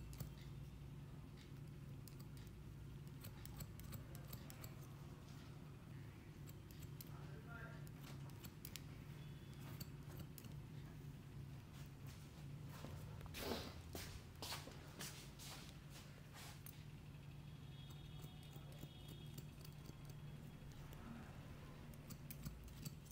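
Scissors snip rapidly close by, with crisp metallic clicks.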